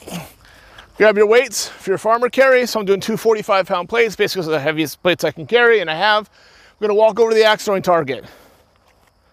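A man talks with animation close by, outdoors.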